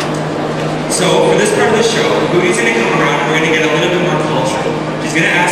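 A young man speaks into a microphone over loudspeakers in an echoing hall.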